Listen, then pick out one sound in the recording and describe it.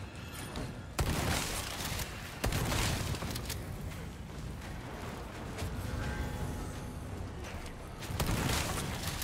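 A shotgun fires loudly with a booming blast.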